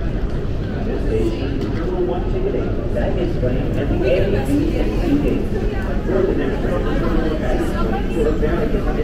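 Young women chat with one another nearby, growing louder.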